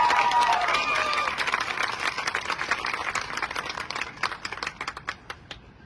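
A large crowd applauds in a big open stadium, the clapping slowly fading.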